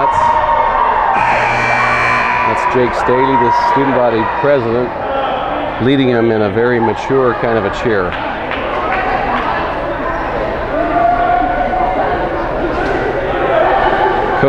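A crowd of teenagers cheers and shouts in a large echoing hall.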